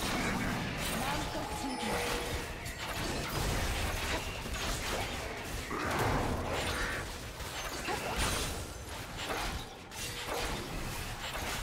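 Hits land with sharp impacts.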